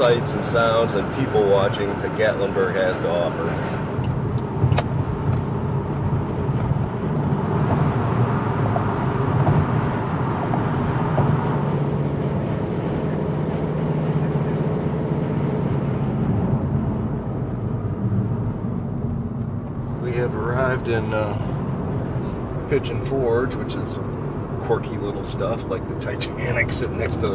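Road noise rumbles steadily inside a moving car.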